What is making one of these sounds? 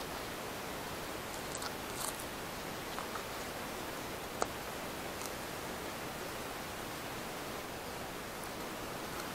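Hands press loose soil around a seedling.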